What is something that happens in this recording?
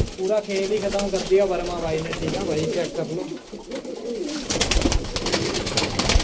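A pigeon flaps its wings briefly.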